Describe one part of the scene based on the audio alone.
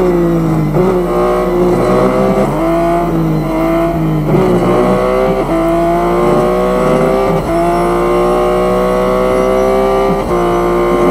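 A race car engine roars, rising in pitch as it speeds up and dropping briefly at each gear change.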